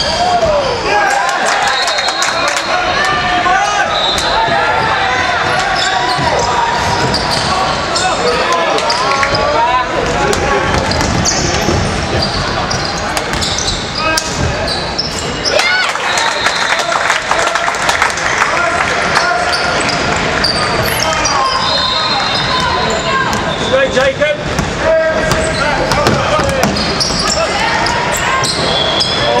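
Players and spectators shout and call out in a large echoing hall.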